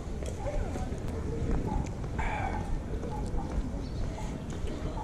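Footsteps tap on wet pavement nearby.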